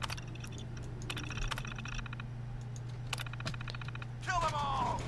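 A computer terminal chatters with quick ticks as text prints out.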